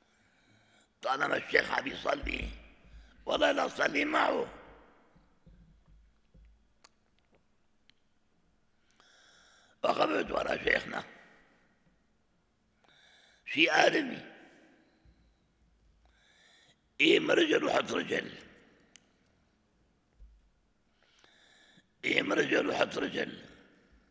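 An elderly man speaks slowly and calmly into a microphone, in short phrases with pauses, in a softly echoing room.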